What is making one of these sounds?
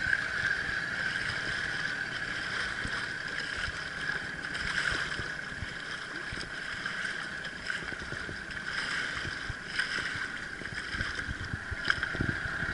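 Water laps and sloshes close by.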